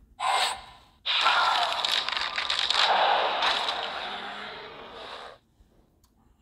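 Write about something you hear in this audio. A magical blast whooshes and rumbles.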